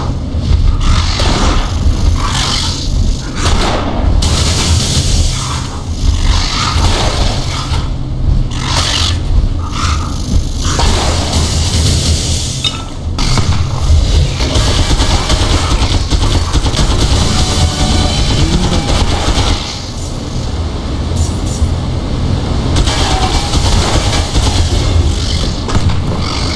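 Fighting sounds crackle and clash in a video game.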